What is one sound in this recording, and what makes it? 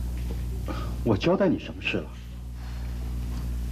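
A middle-aged man asks a question.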